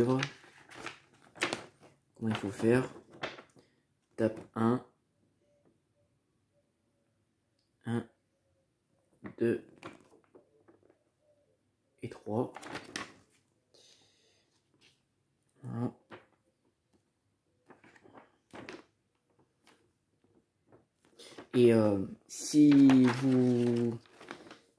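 Paper rustles and crinkles as sheets are handled and flipped.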